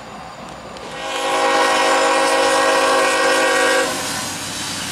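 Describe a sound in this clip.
A train horn blares loudly and steadily.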